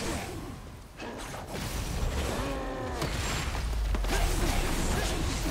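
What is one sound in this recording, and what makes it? Magic blasts crackle and whoosh.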